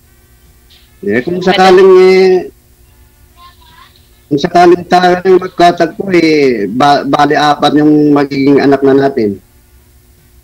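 A young man talks over an online call.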